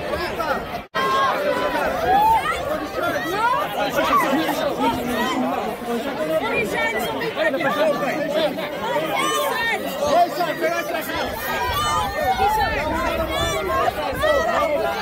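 A crowd of young fans chatters and calls out excitedly up close.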